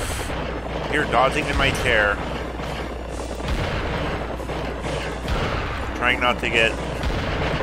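Skeletal creatures screech as they charge.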